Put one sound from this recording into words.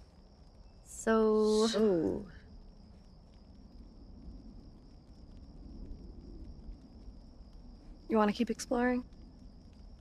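A teenage girl speaks casually.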